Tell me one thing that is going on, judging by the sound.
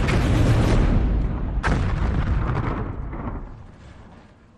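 Loud explosions rumble and roar in a battle.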